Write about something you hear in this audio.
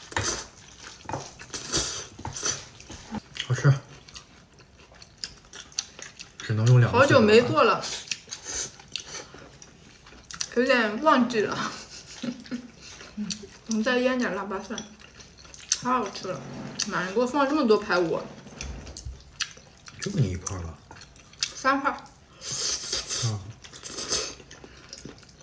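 A young woman slurps noodles close to the microphone.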